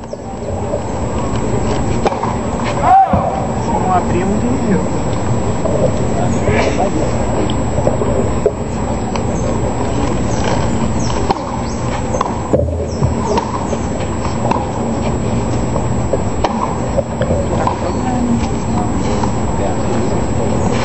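Tennis balls are struck with rackets with sharp pops, heard from a distance.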